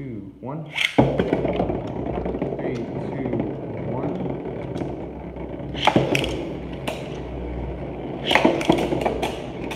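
Spinning tops whir and clatter in a plastic arena.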